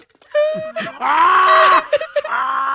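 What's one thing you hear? A man wails loudly with laughter close to a microphone.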